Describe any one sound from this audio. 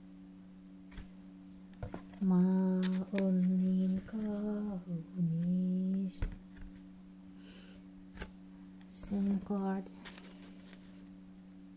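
Paper cards rustle and slide as they are moved by hand.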